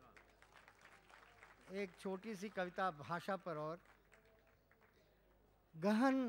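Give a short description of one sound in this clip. An elderly man speaks expressively into a microphone over loudspeakers.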